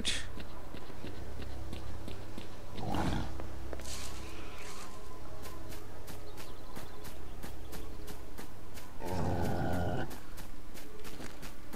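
Footsteps tread steadily over dry ground.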